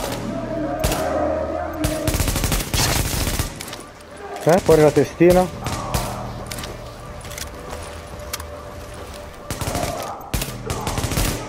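Rifle shots crack and echo again and again.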